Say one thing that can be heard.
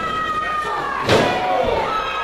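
A wrestler slams onto the ring mat with a loud thud.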